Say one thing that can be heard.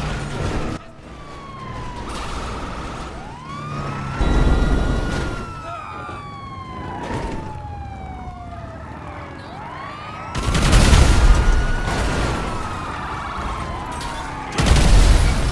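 A police siren wails up and down nearby.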